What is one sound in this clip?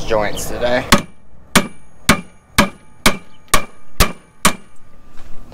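A hammer strikes metal in a quick series of ringing blows.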